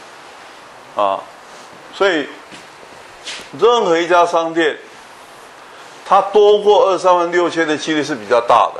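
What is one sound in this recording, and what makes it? An older man lectures into a handheld microphone, speaking in short bursts with pauses.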